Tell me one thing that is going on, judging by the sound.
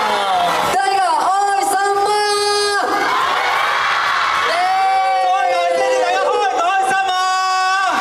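Young men sing loudly through microphones.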